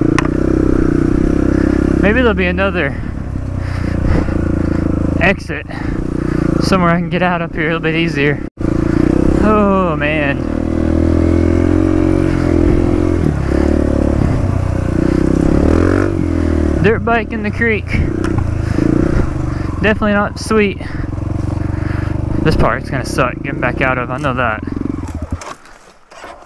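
A dirt bike engine drones close by and revs up sharply again and again.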